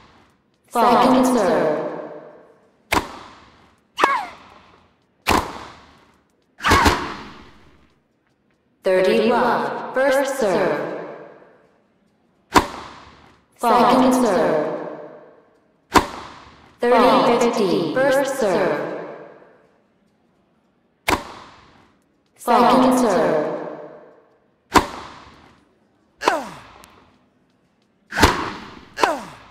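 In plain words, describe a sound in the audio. A tennis racket strikes a ball with sharp pops, again and again.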